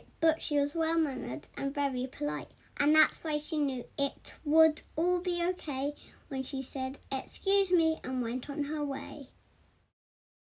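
A young girl speaks with animation, close by.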